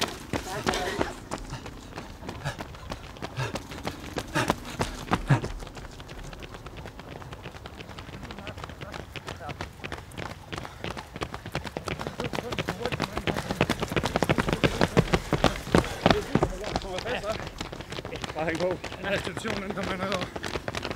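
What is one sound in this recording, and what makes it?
Running footsteps slap on asphalt, coming closer.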